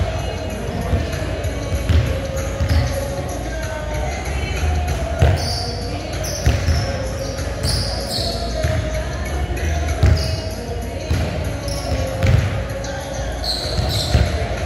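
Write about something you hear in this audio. Shoes squeak on a gym floor.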